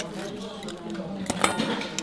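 A knife scrapes and clicks against an oyster shell.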